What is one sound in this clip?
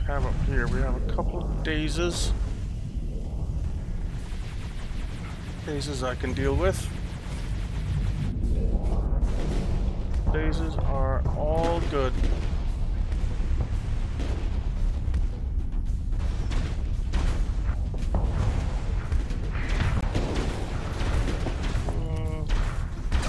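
Laser weapons fire in steady, humming beams.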